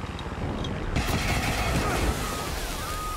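A helicopter crashes with a loud explosion.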